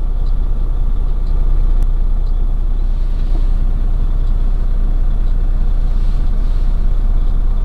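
A heavy vehicle's engine rumbles low and steady from inside the cab.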